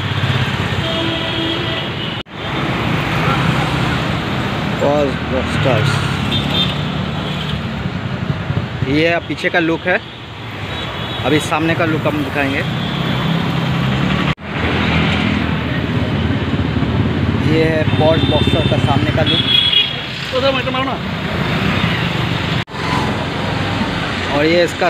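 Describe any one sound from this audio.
Traffic rumbles steadily on a street outdoors.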